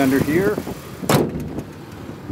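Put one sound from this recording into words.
A car hood slams shut with a loud thud.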